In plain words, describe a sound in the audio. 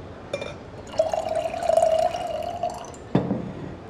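Wine glugs as it is poured into a glass.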